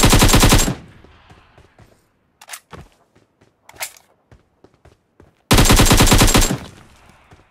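A rifle fires in rapid loud bursts.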